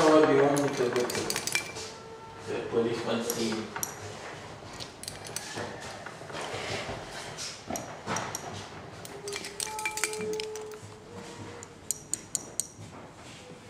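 Small glass objects clink lightly against each other.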